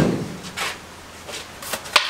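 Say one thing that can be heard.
A broom scrapes and sweeps over a hard floor.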